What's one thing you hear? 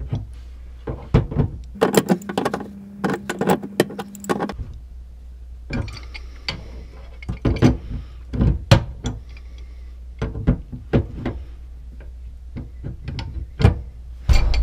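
Metal pipe wrenches clink and scrape against a fitting.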